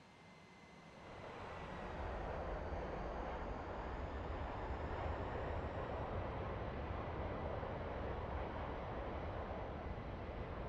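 Jet engines roar loudly and suddenly swell.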